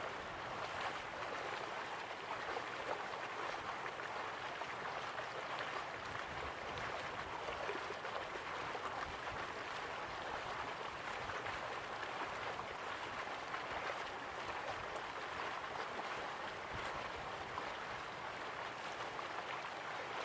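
Water pours steadily down a distant waterfall.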